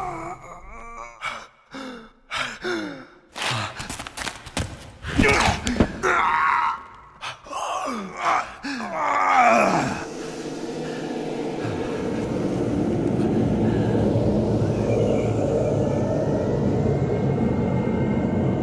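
Electricity crackles and hisses loudly.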